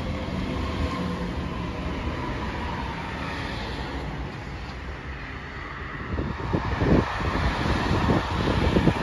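A car drives past on a road nearby.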